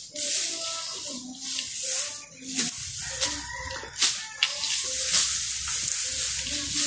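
Dry grass rustles and crackles as it is gathered by hand.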